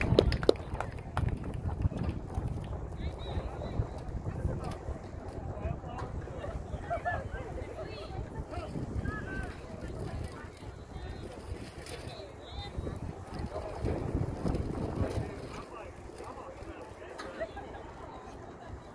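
A small crowd of men and women chats at a distance outdoors.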